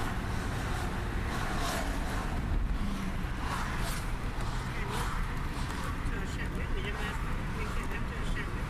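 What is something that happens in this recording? Traffic roars steadily past on a busy highway.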